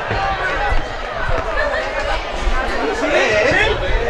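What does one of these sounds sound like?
A crowd of spectators chatters and calls out in the distance.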